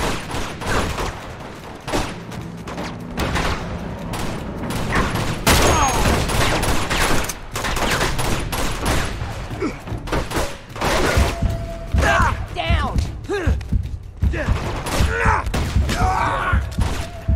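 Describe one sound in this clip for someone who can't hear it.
Gunshots crack repeatedly in a game battle.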